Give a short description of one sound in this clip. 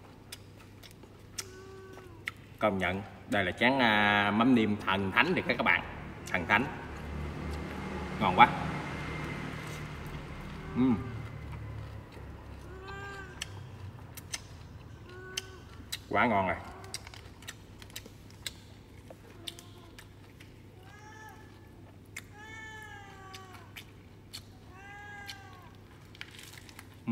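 A young man chews and smacks his lips loudly.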